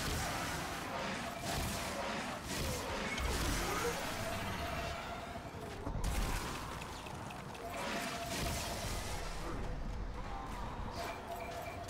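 Energy blasts and explosions crackle and boom in a fast-paced battle.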